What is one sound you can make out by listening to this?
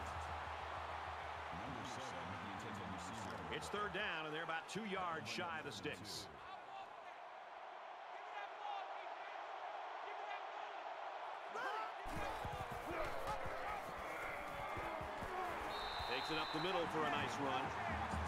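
A large crowd roars in a stadium.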